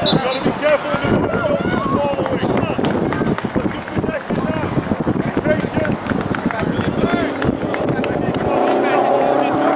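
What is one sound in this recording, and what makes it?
Young players shout and call to each other outdoors on an open field.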